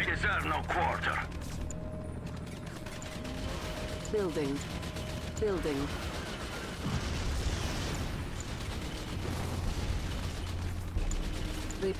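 Heavy engines rumble steadily.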